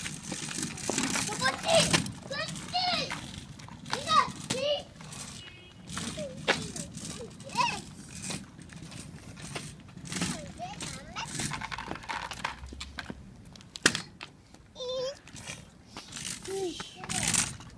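Young children chatter and call out in high voices close by.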